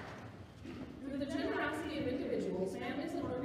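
A man speaks calmly through a microphone and loudspeakers in a large echoing hall.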